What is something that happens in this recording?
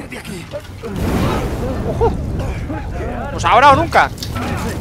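A fiery explosion roars and rumbles.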